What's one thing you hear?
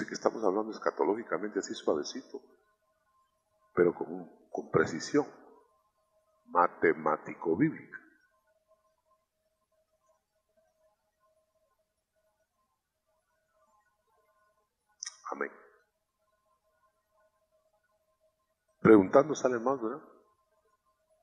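A man preaches into a microphone with emphatic bursts and long pauses.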